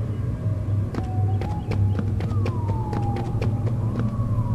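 Footsteps tap on hard stone.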